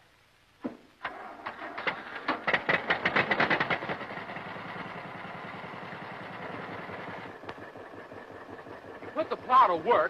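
A tractor engine starts and runs with a steady rumble.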